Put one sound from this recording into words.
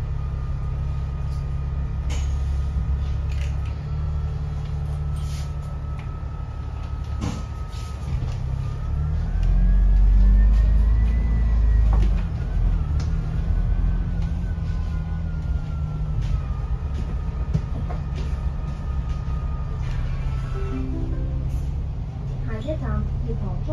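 A bus engine rumbles low and steady throughout.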